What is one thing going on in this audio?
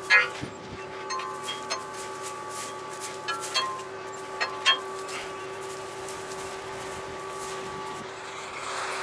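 A farm machine's engine hums steadily.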